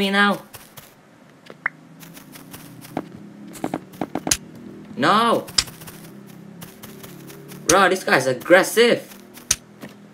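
A game character places blocks with short clicking pops.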